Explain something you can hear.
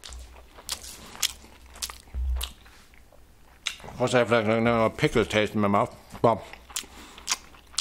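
Paper crinkles as food is handled.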